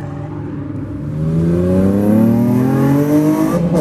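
A second car engine revs up as the car accelerates hard past.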